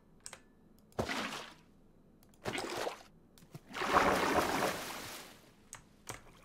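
Water splashes as a bucket is emptied.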